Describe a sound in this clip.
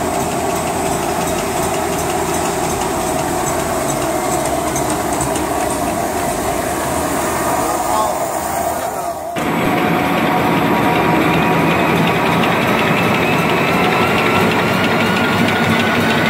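A machine runs with a steady, busy whirring and rattling.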